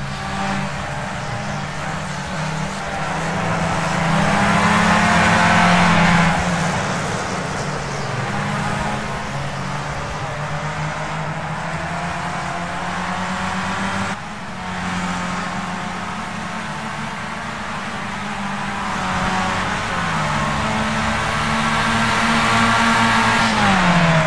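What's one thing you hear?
Another racing car engine drones nearby.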